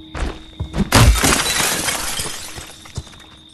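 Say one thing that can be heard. Glass shatters loudly as a window breaks.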